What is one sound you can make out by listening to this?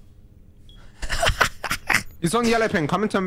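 A young man laughs loudly, close to a microphone.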